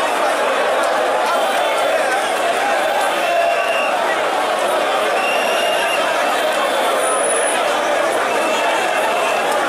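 A large crowd of men chatters and shouts all around, loud and dense.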